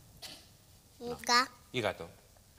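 A young girl speaks briefly in a high voice.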